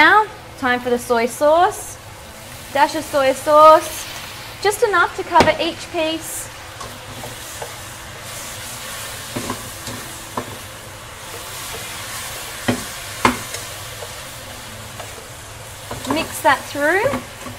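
A spatula scrapes and knocks against a frying pan.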